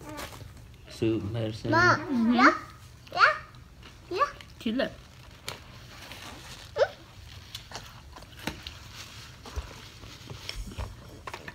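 Paper wrappers crinkle and rustle.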